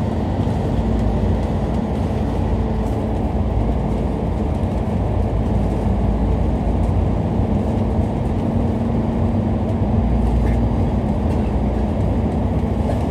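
Traffic roars past in the tunnel.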